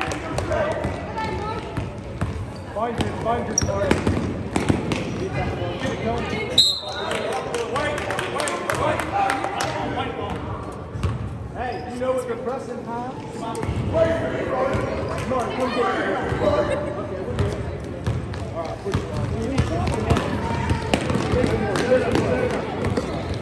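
Young players and spectators shout and call out, echoing in a large hall.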